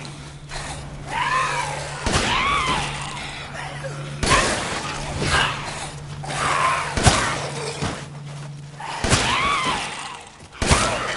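A creature groans and shrieks.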